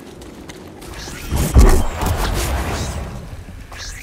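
A creature screeches as it attacks.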